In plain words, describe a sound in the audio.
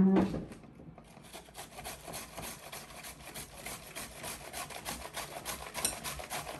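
A vegetable scrapes rapidly over a mandoline slicer.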